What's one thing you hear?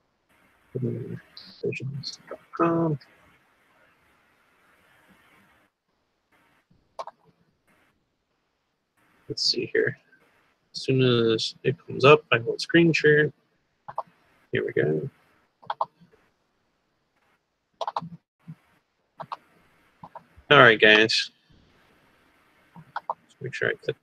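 A man speaks through a headset microphone over an online call, in short bursts with pauses.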